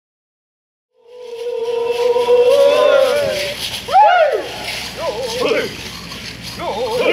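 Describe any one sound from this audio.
A group of men and women sing together outdoors, with voices rising and falling.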